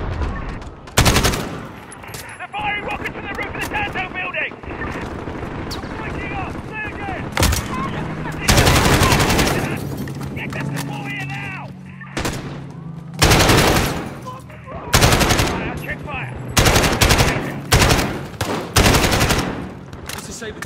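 Rapid bursts of gunfire crack loudly, over and over.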